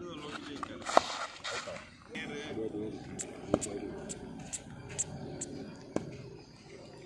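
A bat strikes a ball with a sharp knock.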